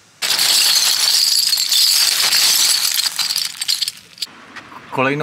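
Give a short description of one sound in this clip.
Metal bottle caps clatter and jingle as a hand stirs through them.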